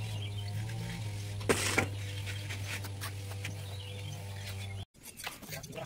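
A hoe scrapes through loose soil.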